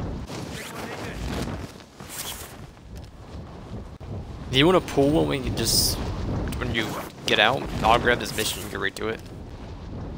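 Wind rushes past steadily during a fall through the air.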